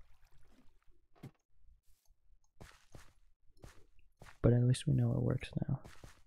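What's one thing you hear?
Footsteps patter softly on grass.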